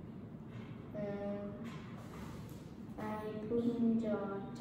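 A young boy speaks nearby, reading aloud in a high voice.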